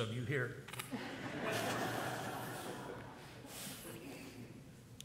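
An elderly man blows his nose into a tissue.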